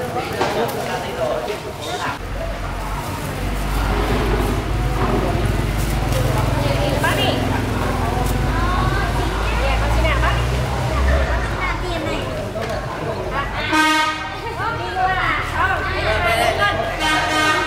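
Young women talk casually nearby.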